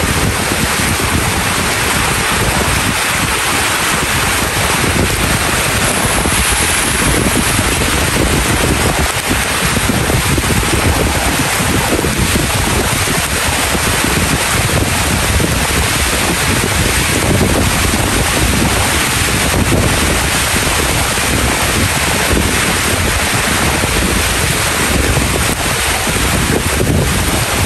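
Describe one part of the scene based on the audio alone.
Heavy rain pours down steadily outdoors.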